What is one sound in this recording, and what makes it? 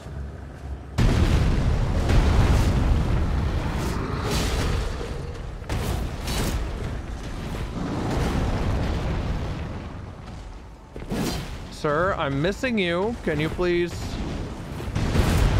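A huge beast stomps and crashes heavily.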